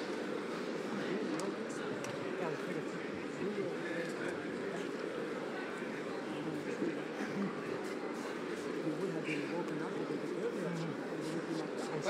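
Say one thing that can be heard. Gloved punches thud against a fighter's body.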